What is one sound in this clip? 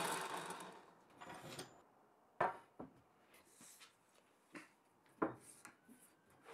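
A wooden board knocks and slides against a metal table.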